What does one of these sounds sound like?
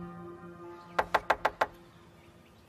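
A woman knocks on a wooden door.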